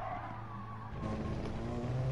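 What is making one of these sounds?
A racing car engine drops briefly in pitch as it shifts gear.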